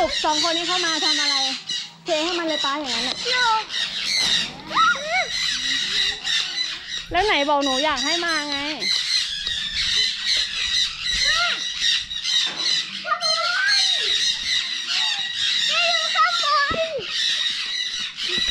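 Young children talk and call out excitedly close by.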